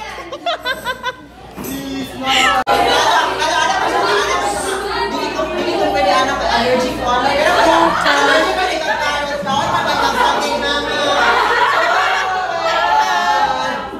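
Several young girls shout and talk excitedly over one another in an echoing room.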